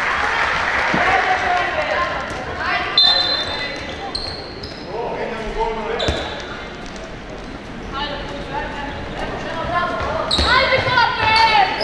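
Young women shout to each other across the court.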